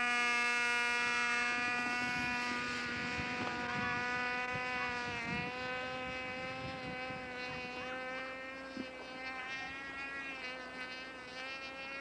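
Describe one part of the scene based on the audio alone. A model airplane engine drones overhead, fading into the distance.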